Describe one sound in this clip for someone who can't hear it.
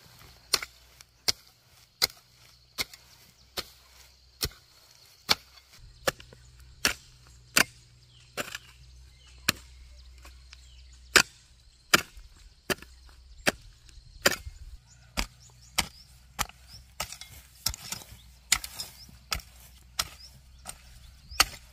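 A hoe strikes into dry soil with steady, dull thuds.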